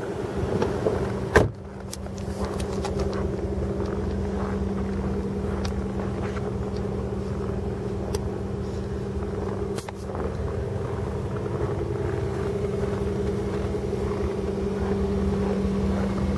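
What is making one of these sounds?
A car engine idles steadily nearby.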